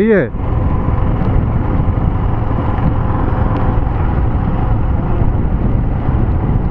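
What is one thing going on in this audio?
Wind buffets loudly past a moving motorcycle.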